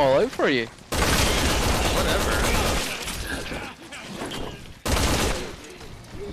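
A rifle fires bursts of loud shots.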